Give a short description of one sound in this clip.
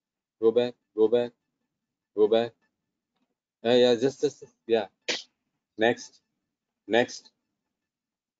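A man speaks in short, separate phrases close to a microphone.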